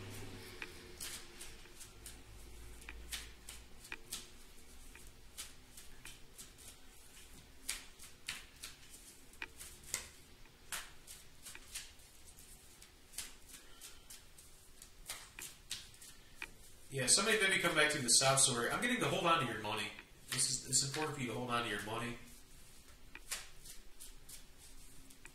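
Playing cards flick and snap as they are shuffled close by.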